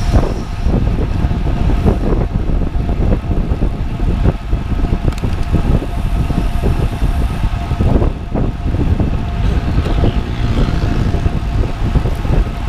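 Bicycle tyres hum on a smooth road.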